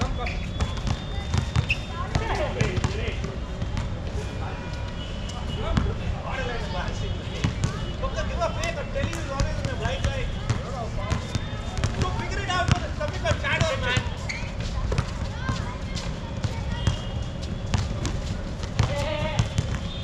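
Sneakers squeak on the court surface.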